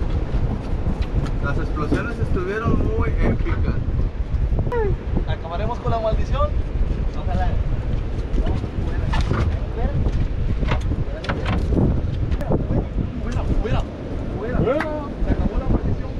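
Young men talk and call out excitedly nearby.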